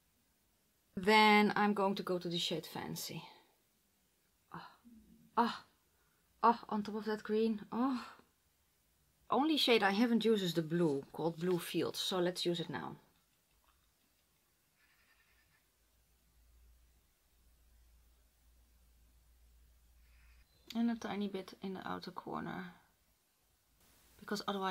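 A woman speaks calmly and closely into a microphone.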